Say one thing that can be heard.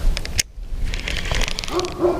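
A fishing reel clicks and whirs as its handle turns.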